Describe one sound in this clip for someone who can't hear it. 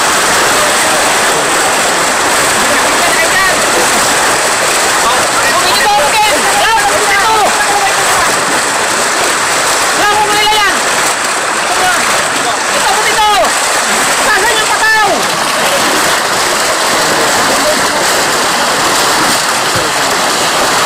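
Fish thrash and splash in the water throughout.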